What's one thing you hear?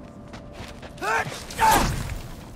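A creature shrieks loudly.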